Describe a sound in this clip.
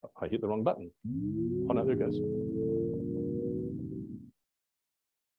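A humming tone plays through a loudspeaker, gliding slightly up at the start, then holding steady.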